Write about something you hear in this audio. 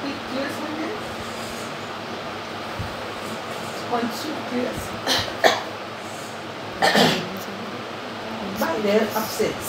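A middle-aged woman speaks calmly nearby, in short phrases.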